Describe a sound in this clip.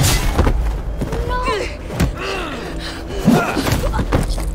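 A young man shouts in alarm.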